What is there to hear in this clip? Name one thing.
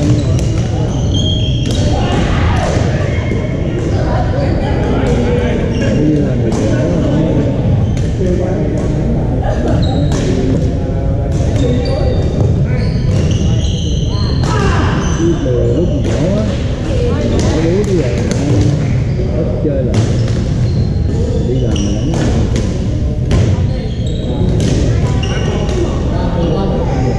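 Paddles pop against a plastic ball in sharp, repeated hits.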